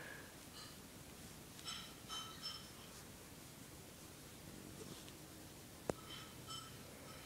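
A cat gives short, high chirping meows.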